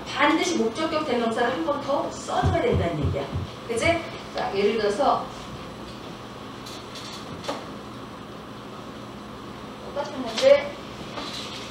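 A woman speaks through a microphone into a room with a slight echo.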